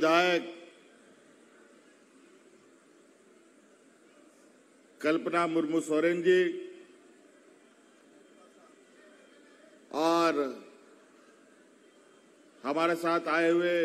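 A middle-aged man speaks forcefully into a microphone, in bursts with long pauses, heard over loudspeakers.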